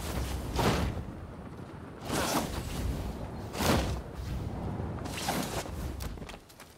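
Large wings beat with deep, rushing whooshes.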